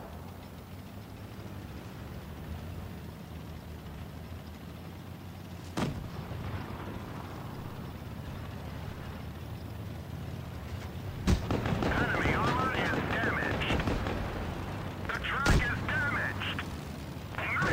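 A tank engine rumbles low and steady as it drives.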